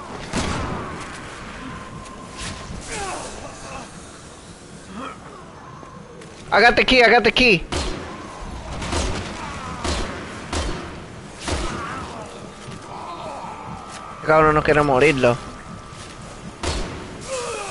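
A rifle fires sharp, loud shots that echo.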